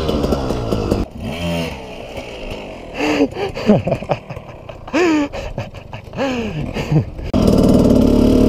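A dirt bike engine whines and revs in the distance.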